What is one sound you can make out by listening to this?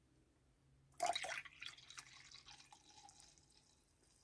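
A spoon clinks against a mug.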